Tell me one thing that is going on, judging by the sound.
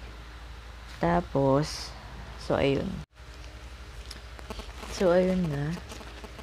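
A young woman speaks close to a microphone in short, animated bursts.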